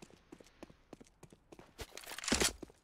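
Quick footsteps tap on hard ground.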